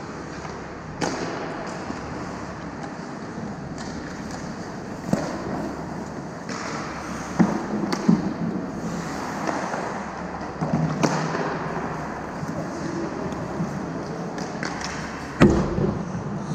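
Hockey sticks clack sharply against the puck and ice.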